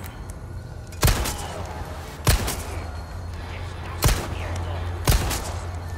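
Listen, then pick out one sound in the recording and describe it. Gunshots fire several times, sharp and loud, with a short ringing echo.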